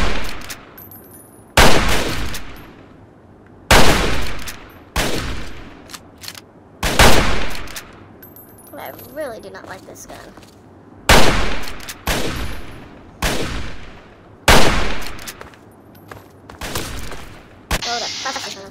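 A rifle fires loud single shots, each echoing away.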